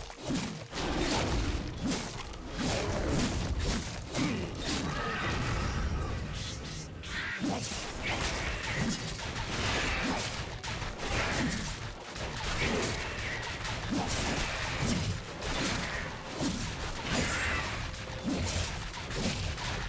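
Fighting sound effects from a video game clash and thud.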